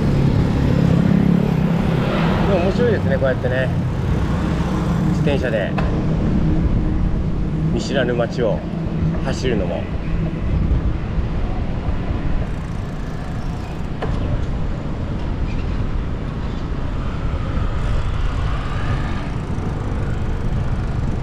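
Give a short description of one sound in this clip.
Traffic rumbles steadily along a street outdoors.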